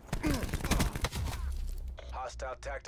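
Gunshots crack in a rapid burst.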